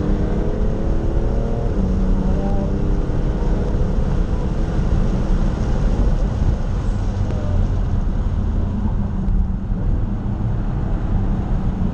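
Wind and road noise rush steadily around the car.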